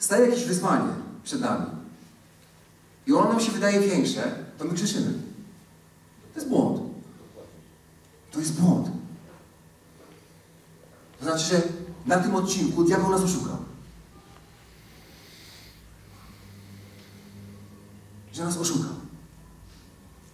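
A man speaks with animation through a microphone and loudspeakers, with pauses between phrases.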